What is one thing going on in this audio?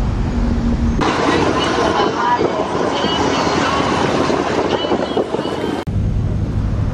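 Waves splash and wash against a moving boat.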